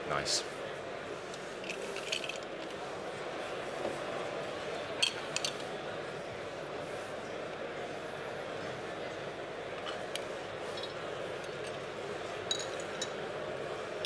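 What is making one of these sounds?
A man speaks into a microphone, heard through loudspeakers in a large room.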